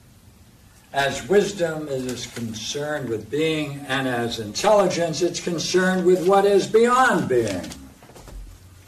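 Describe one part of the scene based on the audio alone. An elderly man speaks with animation, lecturing close by.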